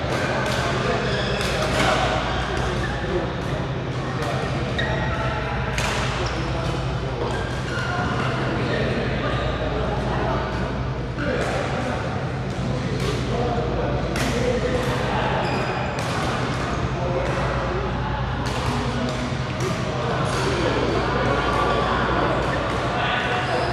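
Badminton rackets smack shuttlecocks with sharp pops, echoing in a large hall.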